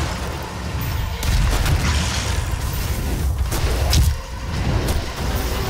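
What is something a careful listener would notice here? A monster growls and roars.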